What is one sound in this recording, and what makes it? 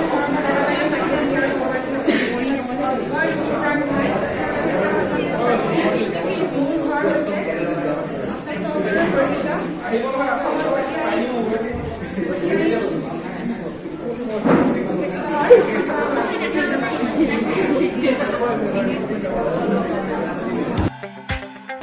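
A young woman speaks into a microphone over a loudspeaker in a large echoing hall.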